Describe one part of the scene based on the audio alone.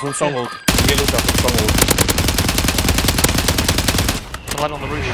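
A gun fires in a rapid, rattling burst.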